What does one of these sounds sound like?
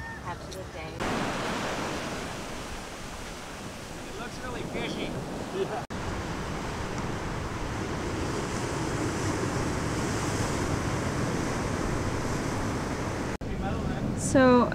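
Waves wash against rocks by the sea.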